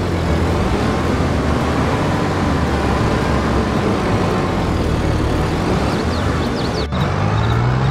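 Diesel tractor engines idle.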